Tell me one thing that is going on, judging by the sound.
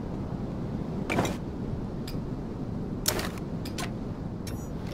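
Short clicks and rustles sound as items are handled.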